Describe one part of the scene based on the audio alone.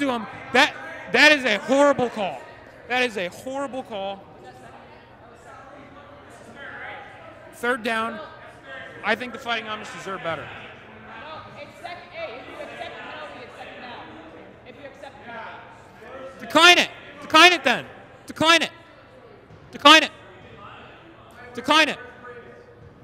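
Young men shout loudly in a large echoing hall.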